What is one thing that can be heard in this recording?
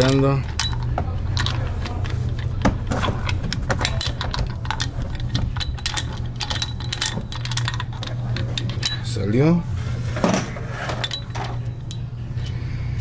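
Metal brake parts click and clatter as a hand works them into place.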